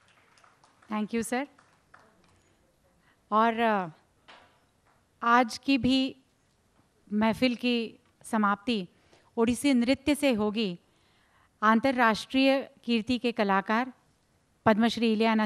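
A woman announces over a loudspeaker in a large echoing hall.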